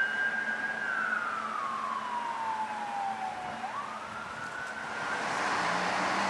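A siren wails, falling and rising in pitch.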